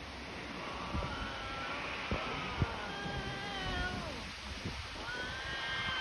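Two cats yowl at each other in long, wavering wails.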